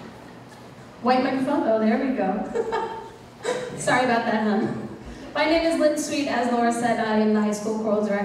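A woman speaks into a microphone over a loudspeaker in a large echoing hall.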